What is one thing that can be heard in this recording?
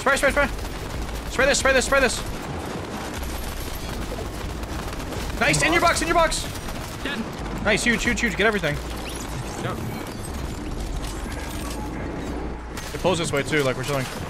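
A young man speaks with animation, close to a microphone, in short bursts.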